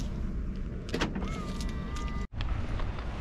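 A car beeps as its remote lock is pressed.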